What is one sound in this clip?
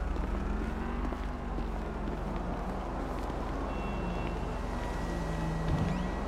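Footsteps tread on concrete steps.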